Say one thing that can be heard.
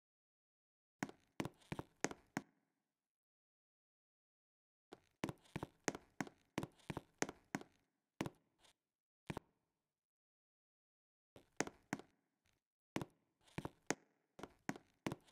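Footsteps tap quickly on a hard floor, in short bursts.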